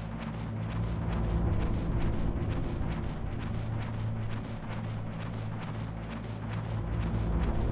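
Footsteps walk steadily along a hard corridor.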